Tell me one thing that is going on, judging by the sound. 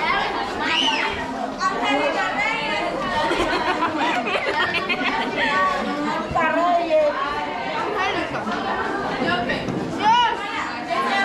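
A crowd of women and girls chatters and laughs loudly nearby in an echoing room.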